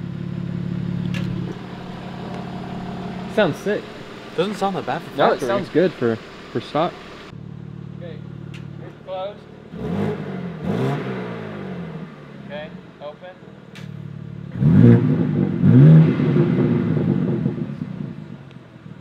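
A car engine idles with a deep exhaust rumble.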